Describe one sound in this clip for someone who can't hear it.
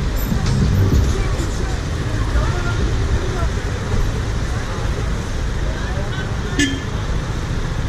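Traffic hums and idles nearby.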